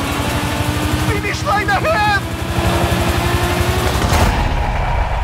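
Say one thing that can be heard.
A racing car engine roars at high revs.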